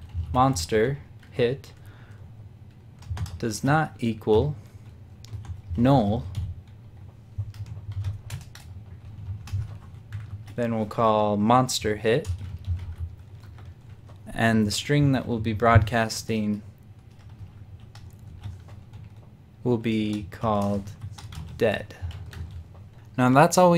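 Keys click on a keyboard as someone types.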